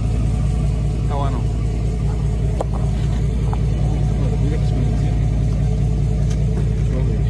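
A truck engine rumbles steadily close by.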